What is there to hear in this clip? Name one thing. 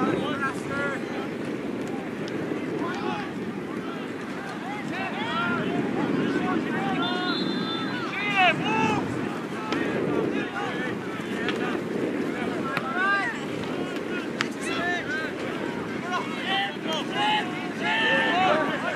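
Young players shout and call out across an open outdoor field.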